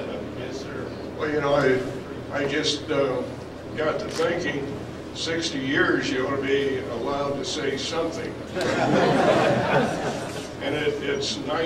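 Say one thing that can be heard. An elderly man speaks into a microphone in a large echoing hall.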